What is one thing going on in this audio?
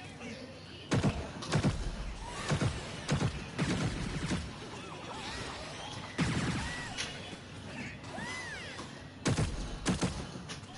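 Explosions boom and crackle in a video game.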